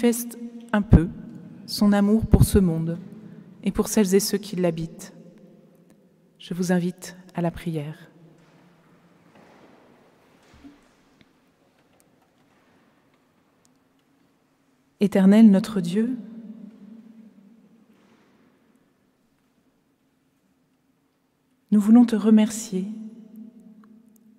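A woman speaks calmly into a microphone, with pauses, echoing in a large hall.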